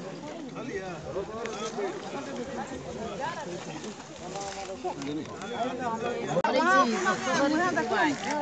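Several men talk over one another close by.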